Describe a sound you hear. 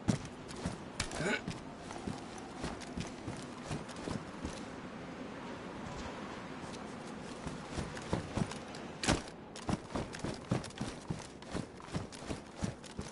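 Footsteps tread quickly and steadily on a hard floor.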